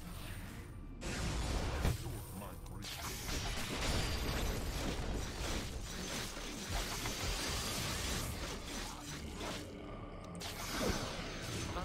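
Game combat effects clash and crackle loudly.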